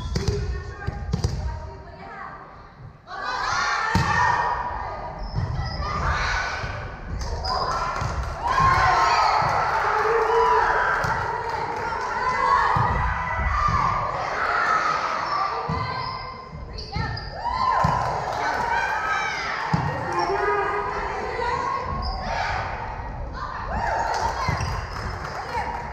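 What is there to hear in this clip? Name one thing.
Young women and girls shout and call out to each other in a large echoing hall.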